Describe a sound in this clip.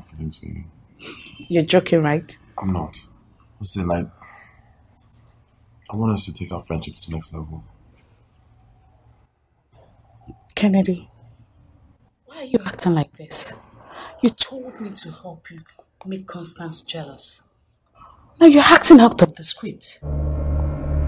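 A young woman speaks with animation, rising to an upset, loud tone.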